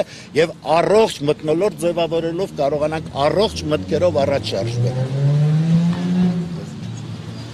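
A middle-aged man speaks loudly and emphatically into microphones close by.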